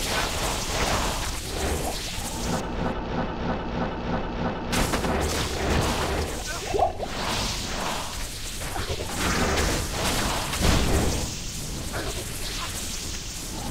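Magic spells crackle and burst in rapid bursts.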